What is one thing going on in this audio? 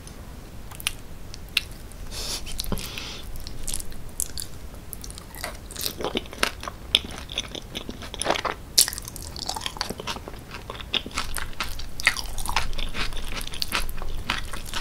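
A fork scrapes and clinks against a glass dish.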